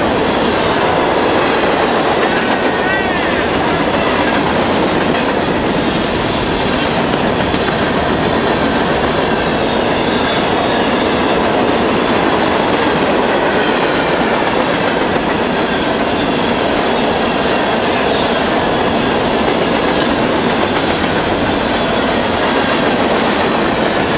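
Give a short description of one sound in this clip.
A long freight train rolls past close by with a loud, steady rumble.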